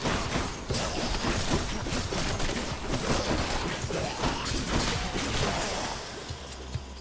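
Fast game combat effects clash and crackle.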